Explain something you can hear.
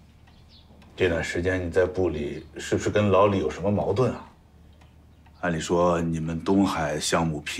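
A man speaks calmly.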